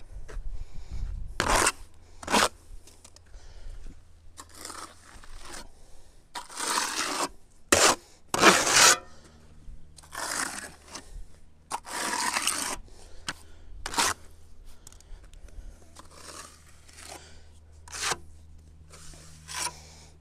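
A trowel scrapes and smooths wet cement.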